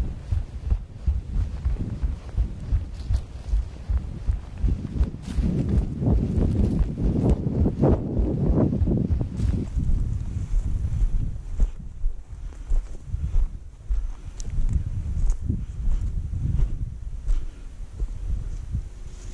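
Wind buffets a microphone outdoors in gusts.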